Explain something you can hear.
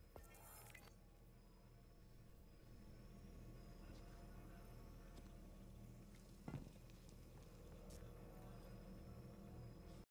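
A low electronic hum drones and pulses steadily.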